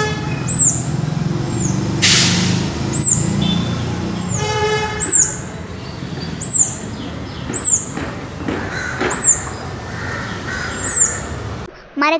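A small bird chirps sharply and repeatedly nearby.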